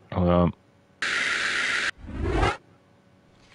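A soft electronic tone hums as a menu opens.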